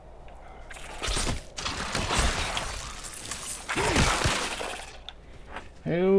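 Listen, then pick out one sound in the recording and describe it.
Heavy weapon blows whoosh and strike in a fierce fight.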